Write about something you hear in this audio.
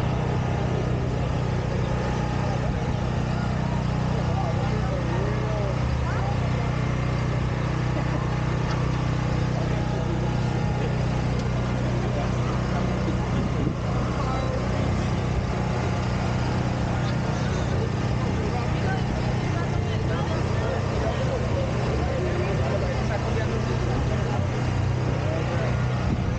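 A crowd of people chatters outdoors all around.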